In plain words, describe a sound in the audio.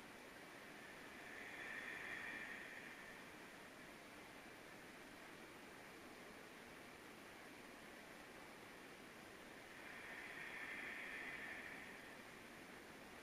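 A woman breathes in slowly and deeply.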